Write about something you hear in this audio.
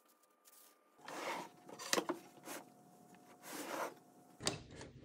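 Wooden boards knock together as they are fitted.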